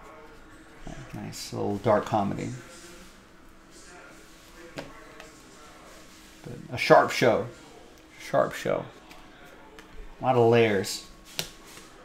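Trading cards rustle and slide as a hand flips through them.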